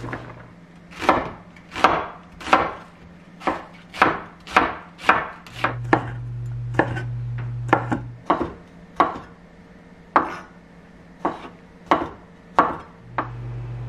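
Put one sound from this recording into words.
A knife chops rhythmically on a wooden board.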